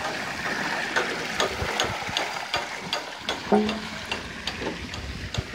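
A wooden water wheel knocks and clatters in a quick, even rhythm.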